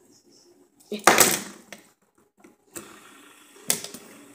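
A plastic fidget spinner clacks on a table.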